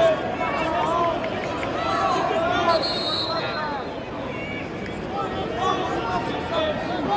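A large crowd murmurs and calls out in a big echoing arena.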